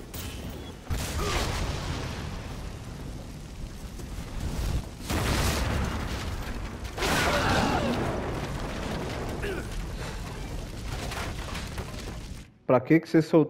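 Flames roar loudly.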